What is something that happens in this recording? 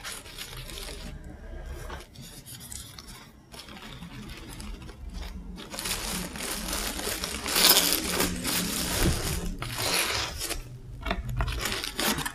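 Paper packing material rustles and crinkles as hands handle it.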